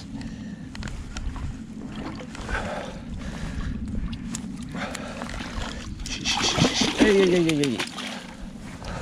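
A landed fish thrashes and splashes in shallow water.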